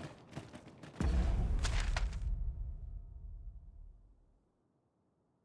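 A deep whoosh sounds as a menu opens.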